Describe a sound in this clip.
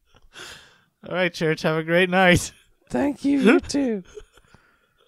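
A man laughs loudly and with animation into a close microphone.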